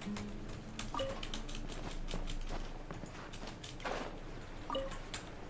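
Game sound effects click and chime.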